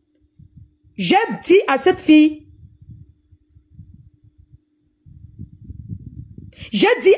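A woman speaks with animation, heard through a phone recording.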